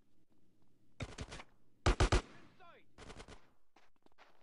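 A gun fires several loud shots.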